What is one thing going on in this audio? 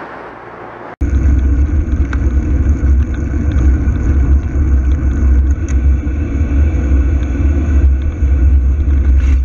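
Bicycle tyres rumble over rough tarmac.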